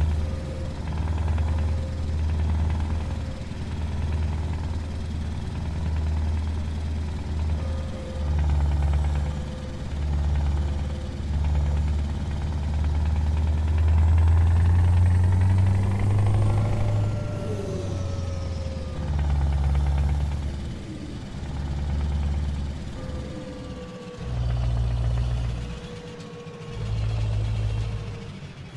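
A heavy truck engine rumbles low and steady, swelling and easing as it changes gear.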